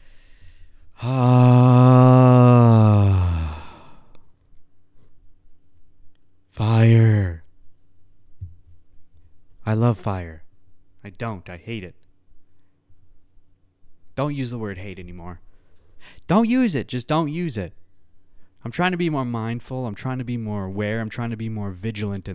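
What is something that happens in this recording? A man speaks close to a microphone, in bursts with pauses.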